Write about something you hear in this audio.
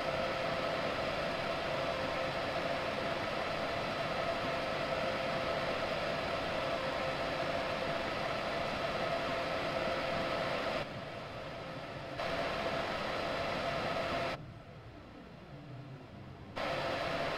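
An electric train hums steadily as it rolls slowly along the track.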